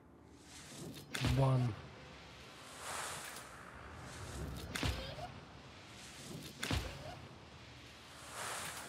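Magic spells whoosh and burst in a game.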